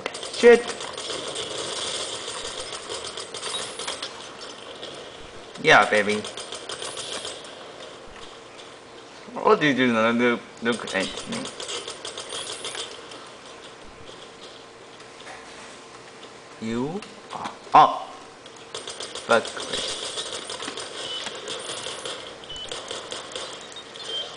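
Rapid gunfire crackles from a video game.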